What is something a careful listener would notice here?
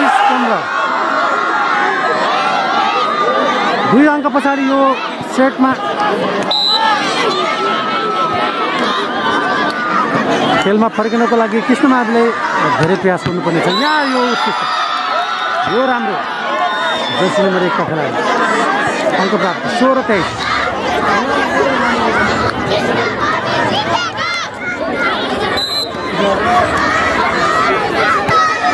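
A large outdoor crowd chatters and cheers.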